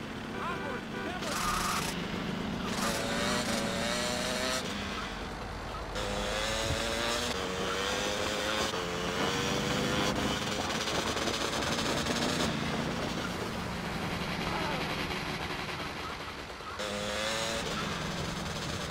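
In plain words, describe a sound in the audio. A motorcycle engine revs and drones steadily.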